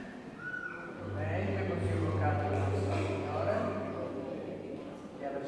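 An elderly man speaks calmly through a microphone and loudspeakers in an echoing hall.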